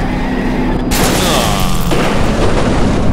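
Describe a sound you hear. A car crashes with a loud crunch of metal.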